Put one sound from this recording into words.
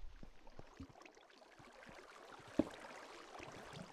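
Water flows and splashes softly.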